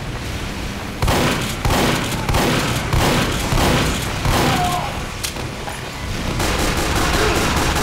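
Shotgun blasts fire in quick succession.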